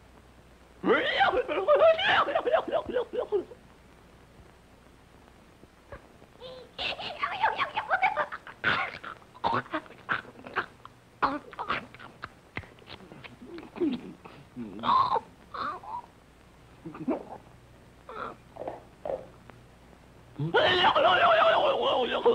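A cartoon donkey brays and laughs loudly.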